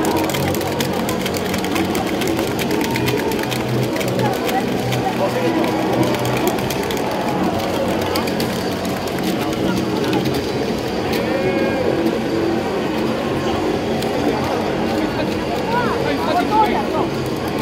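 Many people clap noisily in a large crowd.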